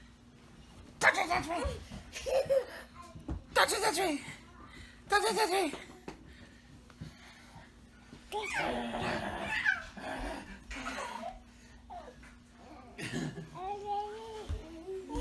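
A small child laughs and squeals.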